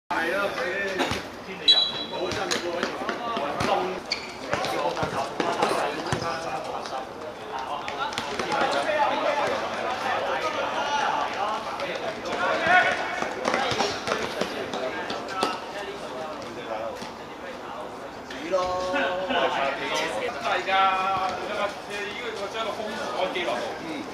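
Young men shout and call to each other.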